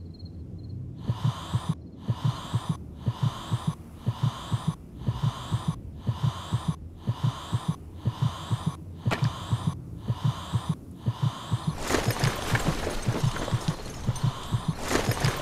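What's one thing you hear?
A soft ticking repeats at a steady pace.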